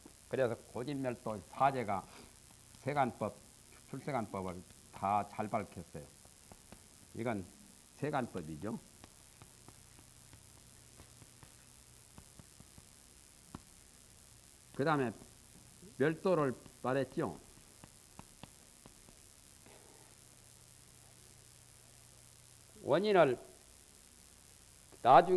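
An elderly man speaks calmly and slowly into a microphone, pausing often.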